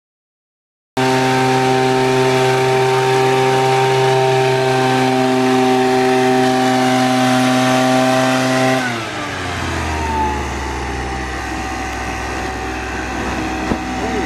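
A small engine drones steadily.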